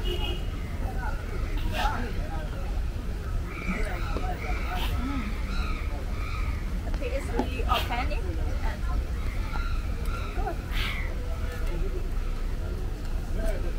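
A young woman slurps a drink through a straw.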